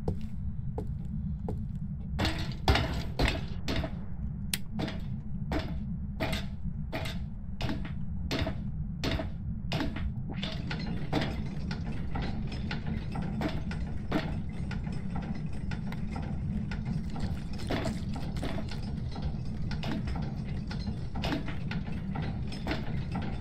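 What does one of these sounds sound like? Footsteps thud at a steady pace on a hard floor.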